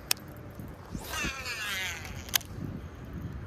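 A fishing line whizzes off a reel during a cast.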